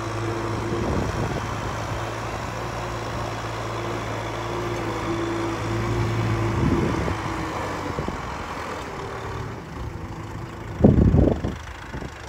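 A rotary tiller churns wet mud.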